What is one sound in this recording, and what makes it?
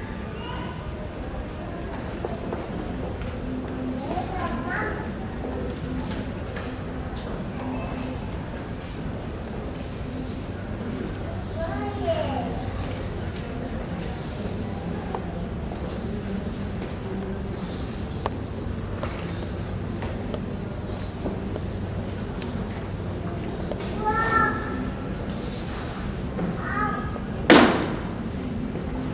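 Ankle bells jingle with a dancer's stamping feet.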